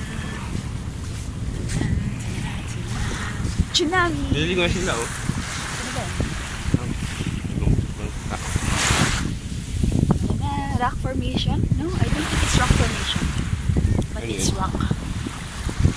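Waves wash gently onto the shore.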